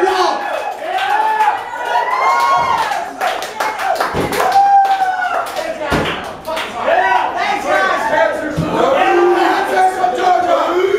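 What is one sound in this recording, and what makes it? A drummer pounds the drums and crashes the cymbals.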